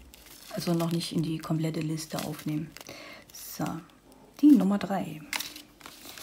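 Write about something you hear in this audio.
A small plastic bag of beads crinkles and rustles as it is handled.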